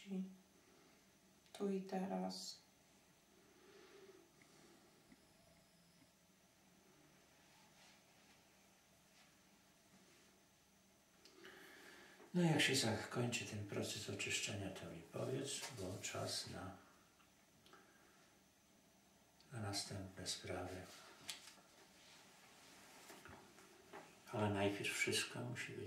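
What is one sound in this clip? An elderly man speaks calmly and slowly nearby.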